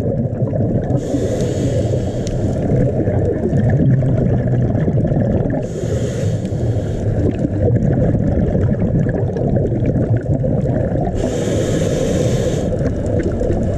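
Scuba bubbles rush and gurgle close by in short bursts.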